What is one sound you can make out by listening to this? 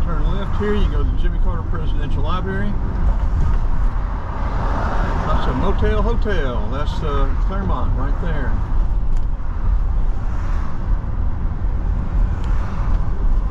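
Light rain patters on a car windshield.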